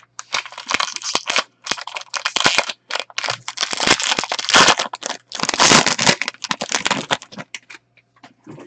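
Plastic wrapping crinkles and tears as a pack is opened.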